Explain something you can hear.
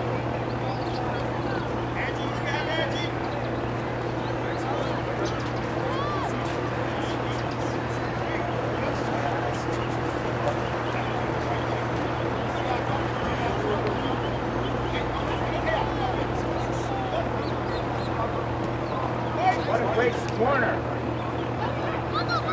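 Outdoors, distant players shout and call to each other across an open field.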